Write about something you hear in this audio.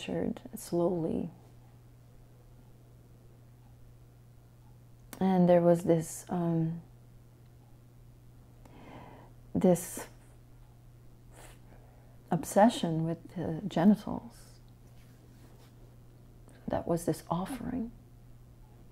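A middle-aged woman speaks calmly and thoughtfully close to a microphone, with long pauses.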